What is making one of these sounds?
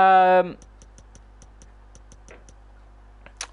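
Soft clicks tick quickly one after another.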